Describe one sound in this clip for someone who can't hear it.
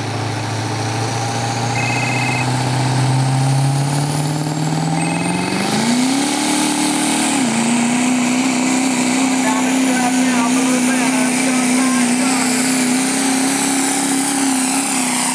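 A diesel truck engine roars loudly, revving higher as it pulls a heavy sled.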